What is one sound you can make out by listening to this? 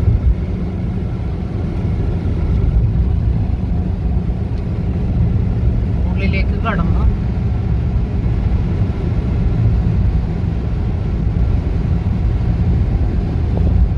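Tyres roar on the road, echoing in a tunnel.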